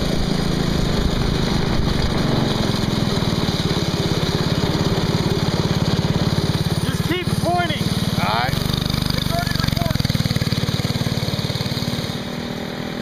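A small engine buzzes loudly close by as a go-kart drives.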